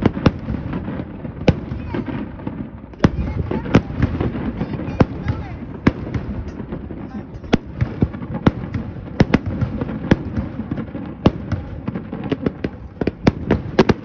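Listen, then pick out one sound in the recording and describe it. Distant fireworks bang and boom across water.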